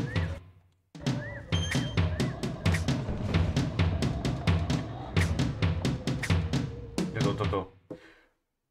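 Bouncy video game music plays with a quick beat.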